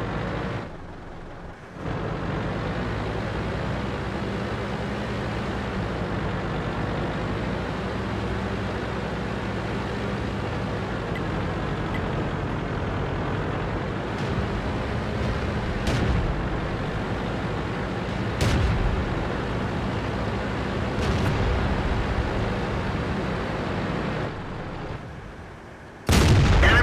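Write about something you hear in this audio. A tank engine rumbles and clanks steadily.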